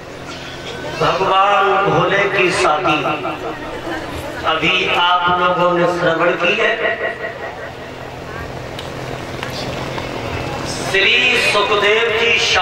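A crowd of women sings together in a large, open space.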